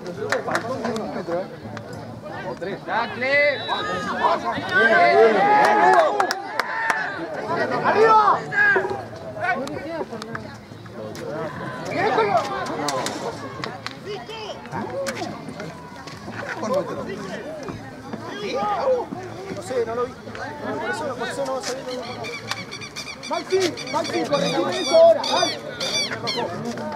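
Spectators shout and cheer loudly nearby, outdoors.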